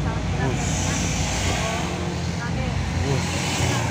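Motorbikes buzz past nearby in traffic.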